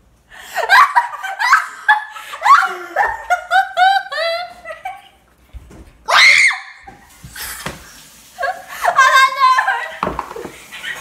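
Teenage girls laugh loudly and shriek close by.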